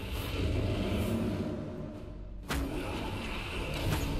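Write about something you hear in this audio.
A magical blast crackles and booms.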